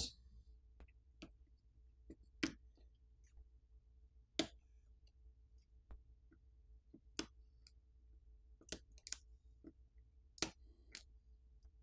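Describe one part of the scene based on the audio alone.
A plastic pick clicks and snaps as it pries at a phone's parts.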